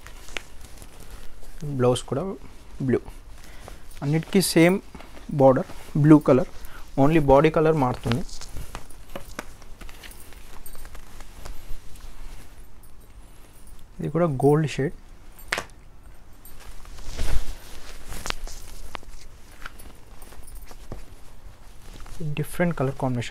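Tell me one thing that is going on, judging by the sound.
Silk fabric rustles and swishes as it is spread out and folded.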